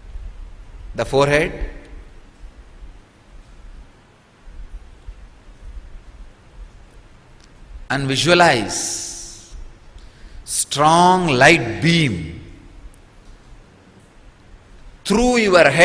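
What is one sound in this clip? A man speaks calmly into a microphone in short phrases with long pauses.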